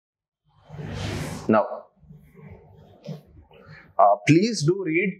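A young man lectures with animation into a close microphone.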